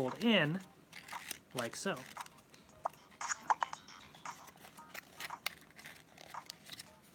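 Cardboard rustles and creaks as it is handled.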